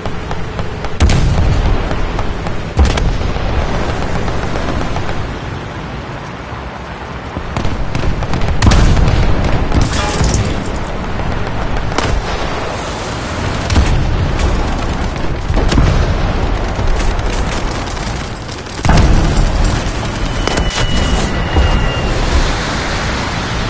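Shells explode nearby.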